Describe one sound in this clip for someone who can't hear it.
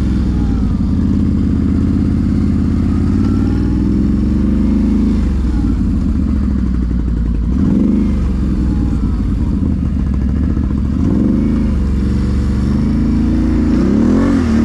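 A quad bike engine roars up close, revving up and down as it rides.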